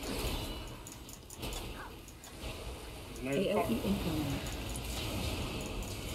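Electric bolts zap and crackle.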